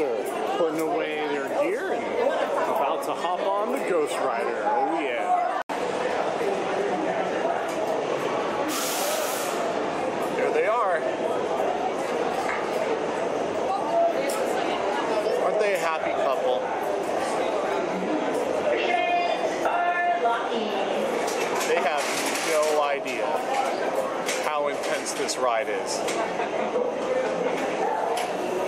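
A crowd of people chatter all around in a large echoing hall.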